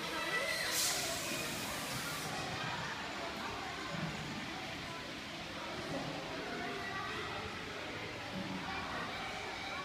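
Children chatter and call out in a large echoing hall.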